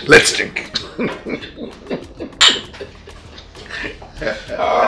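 A middle-aged man laughs heartily nearby.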